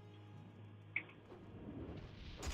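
A magic spell shimmers and crackles.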